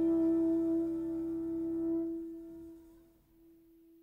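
A piano chord rings out and dies away.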